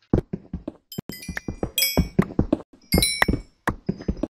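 A pickaxe chips at stone in quick taps.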